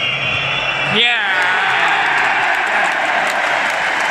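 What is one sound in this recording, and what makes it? A stadium crowd roars and cheers loudly.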